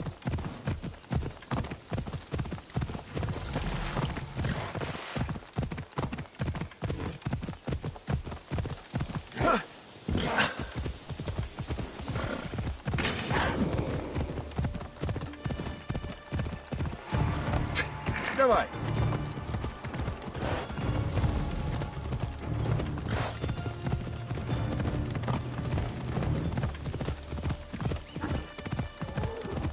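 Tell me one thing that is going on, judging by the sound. Horse hooves gallop steadily over ground.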